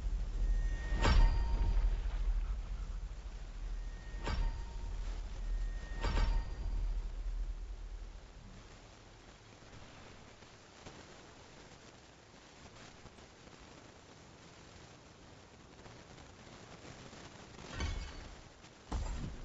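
Short bright game chimes ring out now and then.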